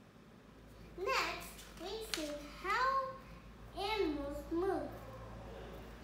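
A young girl speaks up close in a high voice.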